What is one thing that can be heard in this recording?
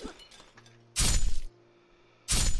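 A blade swishes sharply through the air.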